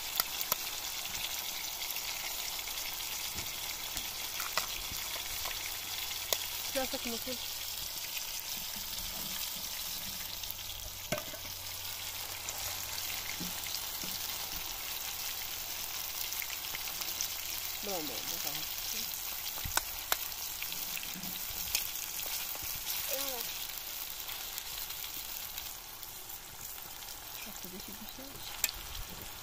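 Food sizzles and crackles steadily in a frying pan.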